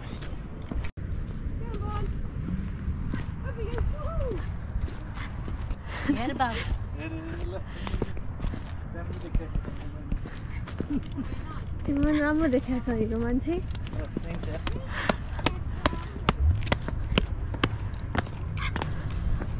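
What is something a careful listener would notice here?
Footsteps scuff on a paved path.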